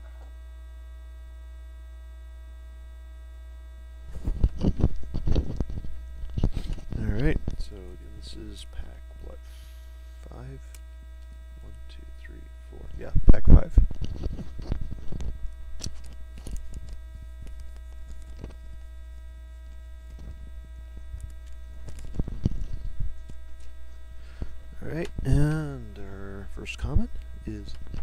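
Trading cards rustle and tap as a hand handles them.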